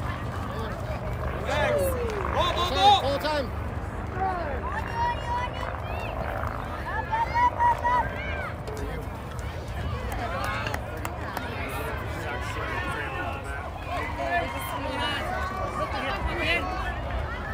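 Young girls shout and cheer outdoors.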